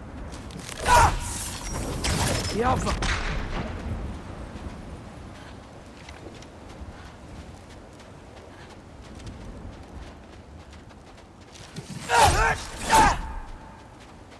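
An axe whooshes through the air and strikes with a loud crack.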